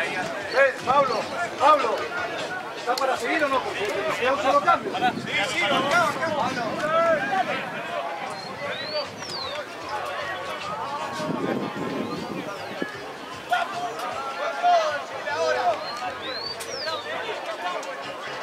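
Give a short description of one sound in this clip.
Rugby players shout and call to each other on an open field.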